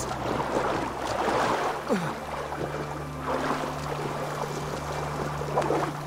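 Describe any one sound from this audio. Water sloshes and splashes in bursts as someone wades through it.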